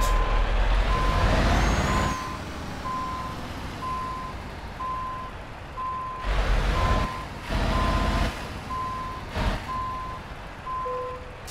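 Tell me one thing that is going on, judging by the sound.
A heavy truck engine rumbles low, rising in short bursts.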